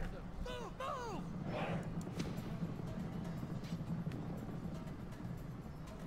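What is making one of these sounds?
Horses' hooves thunder in a cavalry charge.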